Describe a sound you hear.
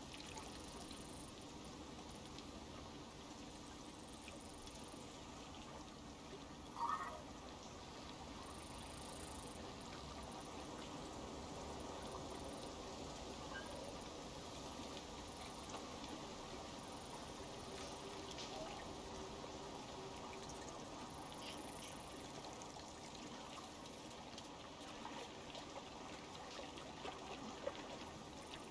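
Wind rustles softly through trees outdoors.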